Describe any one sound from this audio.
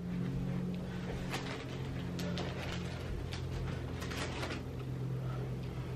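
Foil balloons crinkle as they are handled.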